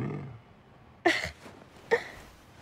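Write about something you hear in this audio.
A young woman laughs.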